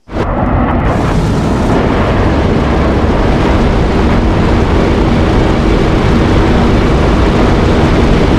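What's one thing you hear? A four-engine turboprop transport plane drones in flight.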